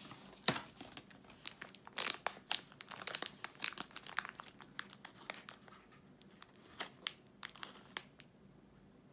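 A plastic wrapper crinkles and rustles close by.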